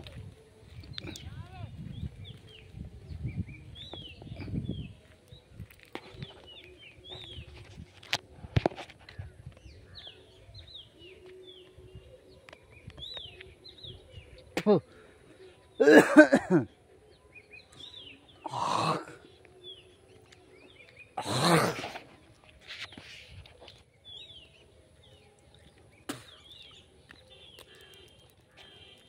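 Birds chirp and twitter outdoors.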